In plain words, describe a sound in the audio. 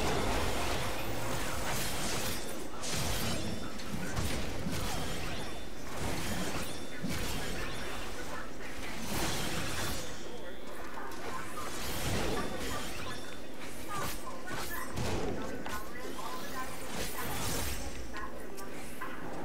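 Game spell effects whoosh and hit in quick bursts.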